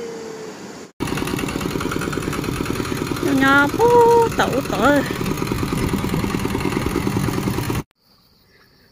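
A small tractor engine chugs loudly and steadily close by.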